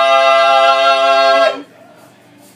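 A young man holds a long loud note with his voice close by.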